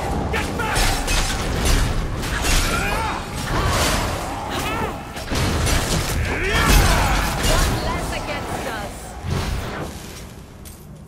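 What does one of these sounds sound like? Magic spells crackle and blast loudly.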